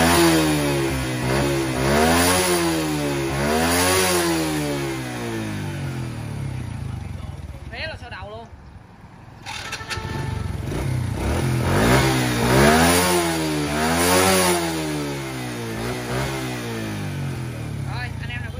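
A small motorcycle engine revs up and down repeatedly, close by.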